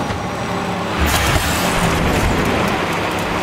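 Tyres skid and scrape as a car drifts around a corner.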